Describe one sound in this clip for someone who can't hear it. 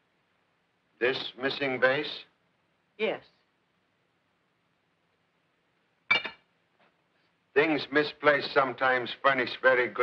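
A middle-aged man speaks forcefully nearby.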